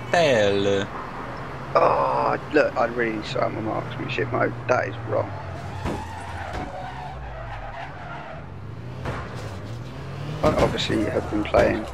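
A car engine hums as a car drives along.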